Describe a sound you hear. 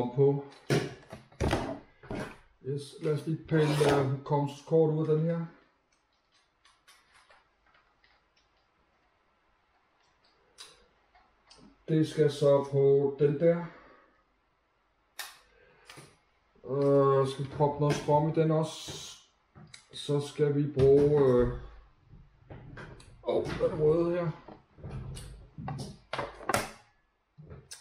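A middle-aged man talks calmly and close by, explaining.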